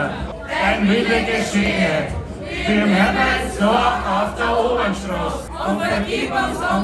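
A young man speaks with animation into a microphone over loudspeakers.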